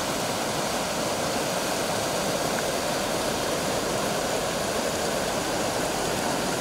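A shallow river rushes steadily over rocks outdoors.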